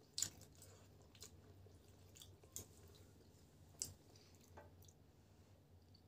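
A woman slurps noodles loudly, close by.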